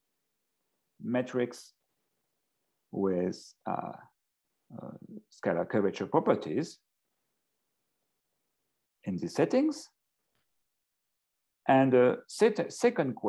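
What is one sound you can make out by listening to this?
A man speaks calmly in short phrases with pauses, heard through an online call.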